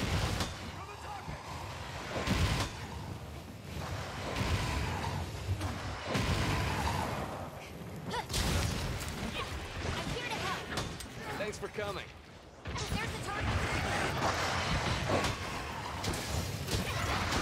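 Fiery blasts burst and crackle.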